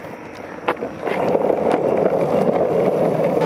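Skateboard wheels roll and rumble over rough pavement.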